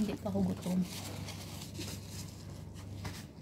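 A tissue rustles against a face.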